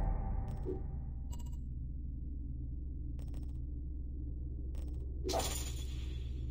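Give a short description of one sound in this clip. Soft game menu clicks sound now and then.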